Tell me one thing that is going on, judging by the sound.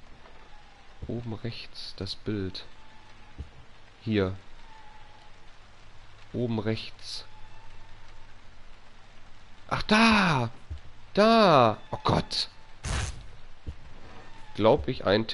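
A young man talks in bursts into a headset microphone, with animation.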